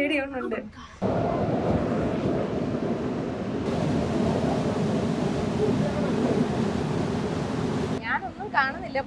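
A waterfall roars and rushes loudly close by.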